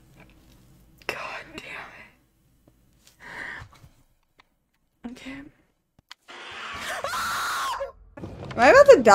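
A young woman whimpers and talks in fright close to a microphone.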